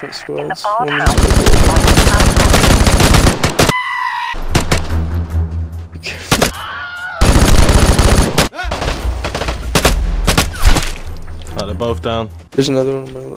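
A rifle fires a series of loud shots.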